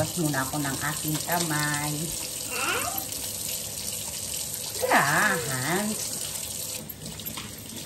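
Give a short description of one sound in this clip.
Tap water runs and splashes.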